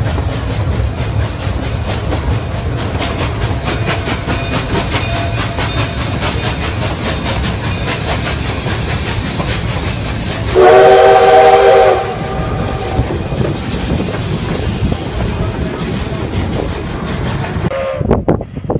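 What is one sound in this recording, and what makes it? A steam locomotive hisses and chuffs nearby.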